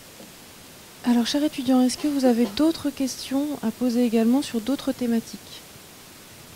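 A woman speaks with animation through a microphone in a large room.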